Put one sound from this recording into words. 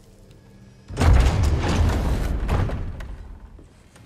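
A heavy wooden door rumbles open.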